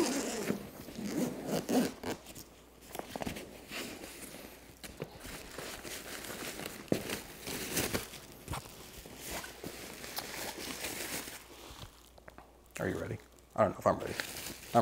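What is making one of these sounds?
Plastic wrapping crinkles and rustles as it is handled.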